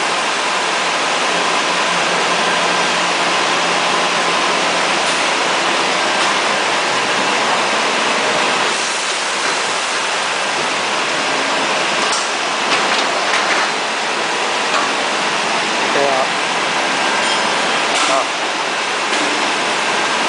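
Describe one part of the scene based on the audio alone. Machinery hums steadily in a noisy room.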